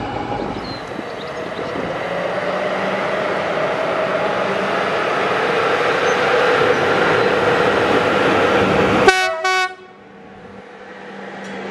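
An electric locomotive rumbles closer as it pulls a train.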